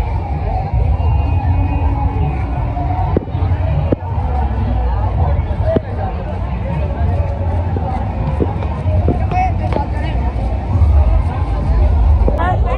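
A crowd of men and women chatters outdoors.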